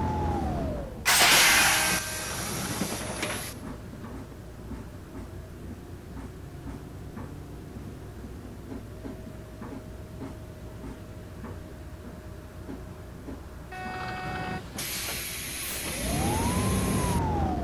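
A bus engine idles quietly, then revs up.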